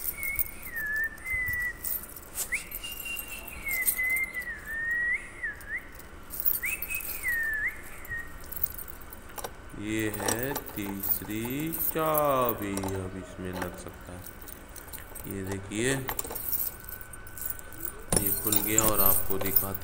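Keys jingle on a ring.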